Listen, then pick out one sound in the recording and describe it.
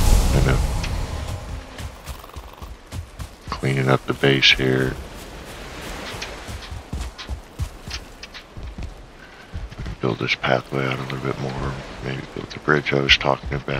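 Footsteps tread on grass and wooden planks.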